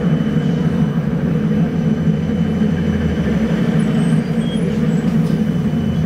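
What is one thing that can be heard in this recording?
An engine hums steadily from inside a moving vehicle.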